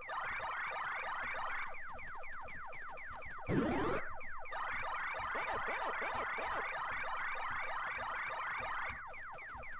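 Rapid electronic chirps from a video game sweep up and down over and over.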